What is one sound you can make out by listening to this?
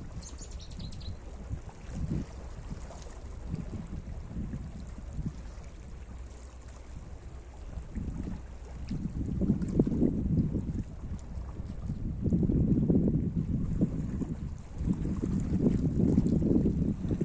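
Small waves lap and splash against rocks close by, swelling louder in surges.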